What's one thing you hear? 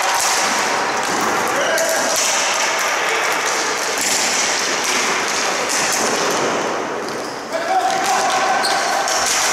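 Sticks clack against a ball and each other.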